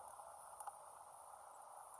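Water pours from a plastic bottle into a metal pot.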